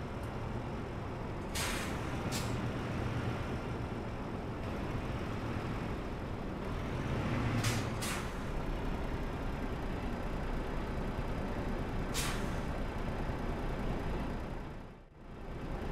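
A diesel semi-truck engine rumbles low while rolling slowly.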